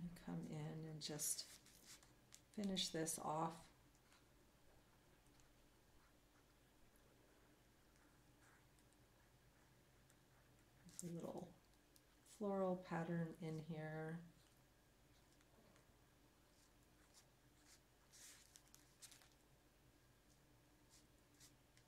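A pen scratches lightly on paper.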